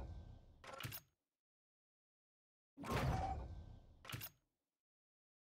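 A game menu plays whooshing reward sounds as items unlock.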